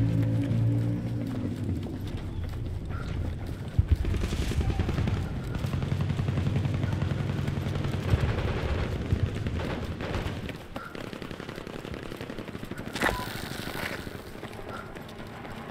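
Footsteps run quickly across hard ground.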